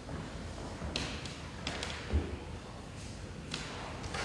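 Footsteps echo in a large, reverberant hall.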